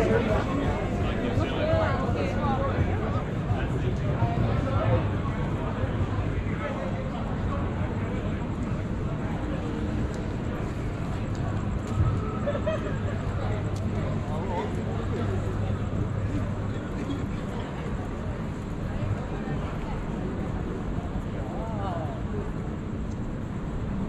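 Adults chatter faintly as they walk past outdoors.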